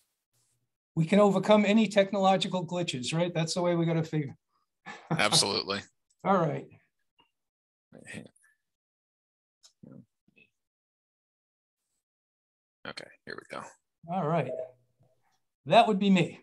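A man speaks calmly through an online call, pausing now and then.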